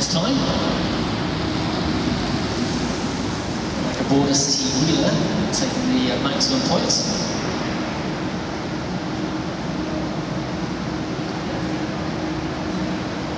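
A pack of track bicycles whirs past on a wooden track in a large echoing hall.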